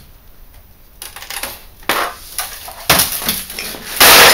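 Plastic parts creak and clatter as a casing is pulled apart.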